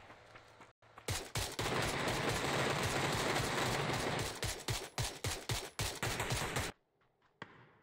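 A rifle fires in rapid shots.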